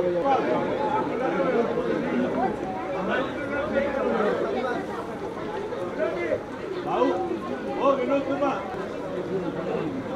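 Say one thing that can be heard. A crowd of men and women talk over one another close by.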